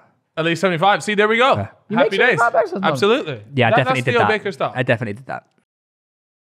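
A young man speaks into a microphone with animation, close up.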